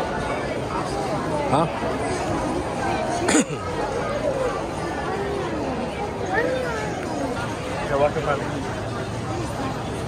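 A crowd of people chatters all around in a busy outdoor street.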